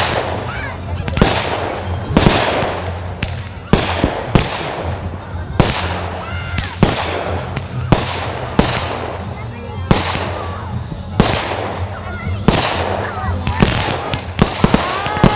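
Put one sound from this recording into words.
Firework rockets whistle as they rise.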